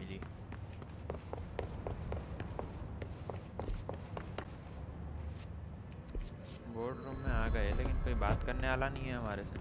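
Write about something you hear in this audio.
Footsteps tap on hard steps and floor.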